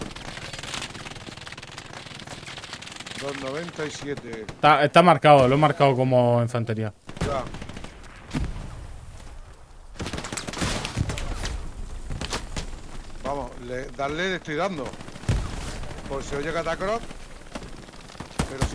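Gunshots crack outdoors.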